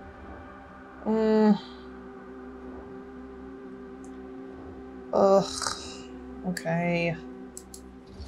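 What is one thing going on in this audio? A young woman speaks briefly into a microphone.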